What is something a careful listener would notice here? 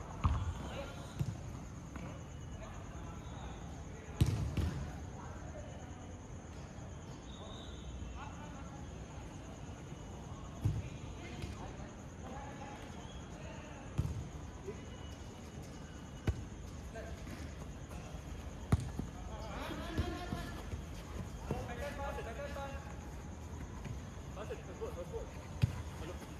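A football thuds against feet as players kick it across the pitch.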